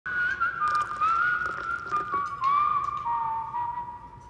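Tea pours into a glass.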